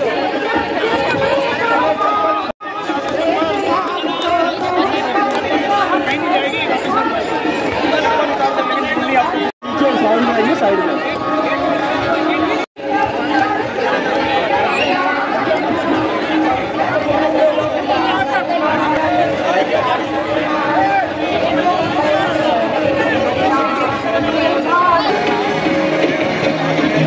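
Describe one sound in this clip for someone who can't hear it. A large crowd of women and men chants and sings together outdoors.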